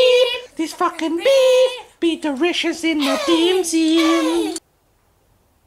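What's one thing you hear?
A young man sings loudly and playfully close to a microphone.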